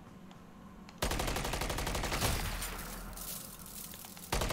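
An explosion booms and crackles with fire.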